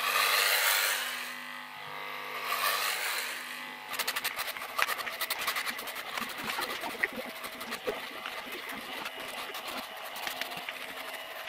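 Electric hair clippers buzz close by while cutting hair.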